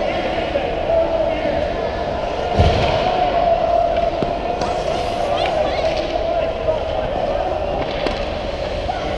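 Hockey sticks clack against the ice and puck.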